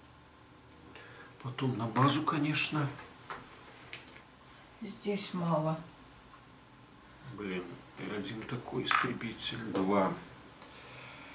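A middle-aged man talks casually close by.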